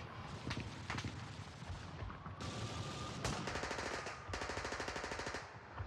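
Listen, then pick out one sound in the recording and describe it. A machine gun fires in rapid bursts nearby.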